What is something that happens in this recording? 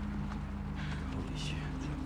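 A man exclaims in surprise.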